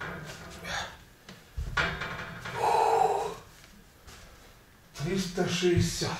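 A man breathes hard and talks loudly nearby.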